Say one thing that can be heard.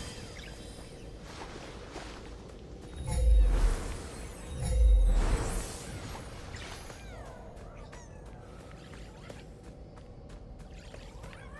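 Light footsteps patter on stone.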